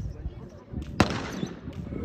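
A starting pistol cracks once.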